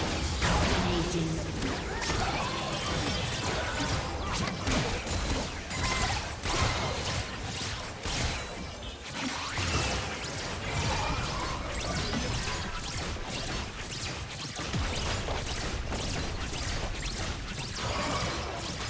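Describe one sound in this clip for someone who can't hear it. Fantasy game spells whoosh and crackle in a fast battle.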